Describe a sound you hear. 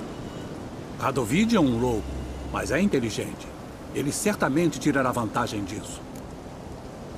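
An elderly man speaks calmly in a deep voice.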